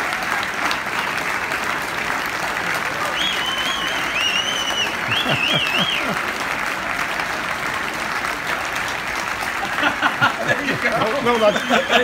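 A large outdoor crowd cheers and applauds loudly.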